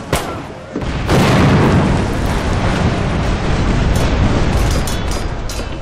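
Cannons boom in loud, rumbling blasts.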